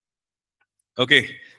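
A man speaks into a microphone close by.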